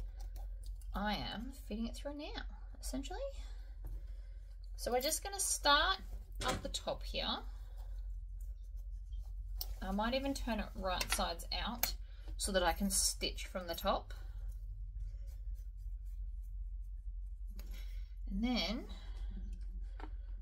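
A woman talks calmly close by, explaining in short bursts.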